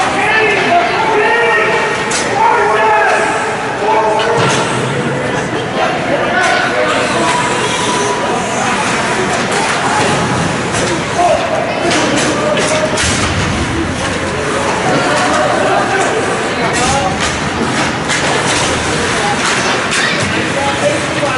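Hockey sticks clack against the puck and boards.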